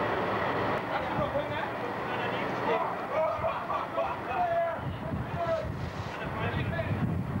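Several men shout and laugh nearby.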